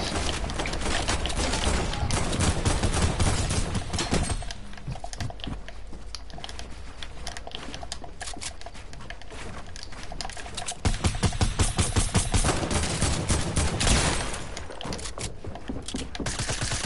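Wooden building pieces snap into place in quick succession.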